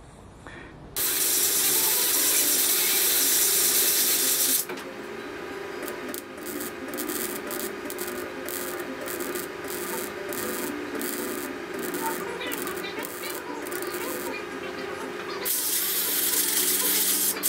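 An air tool whirs loudly against sheet metal.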